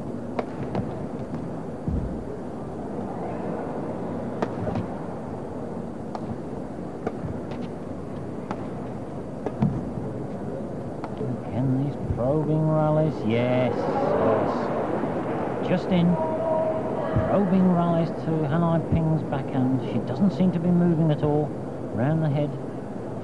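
A large crowd murmurs in an echoing hall.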